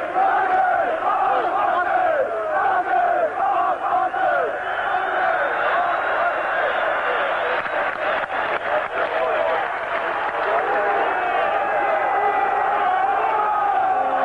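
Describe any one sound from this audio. A large stadium crowd chants and sings loudly throughout.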